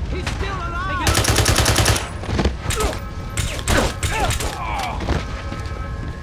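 A rifle fires a rapid burst of loud gunshots.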